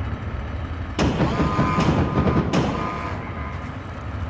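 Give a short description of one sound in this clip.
A deep swelling game chime rings out with a ringing tone.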